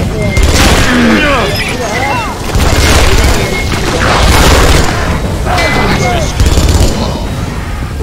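A gun fires in bursts.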